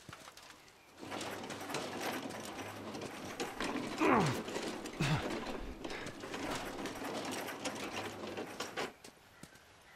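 A metal cart rattles as its wheels roll over hard ground.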